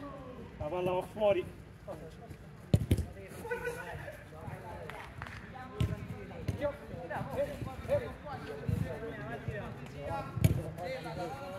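A football thumps as it is kicked on artificial turf.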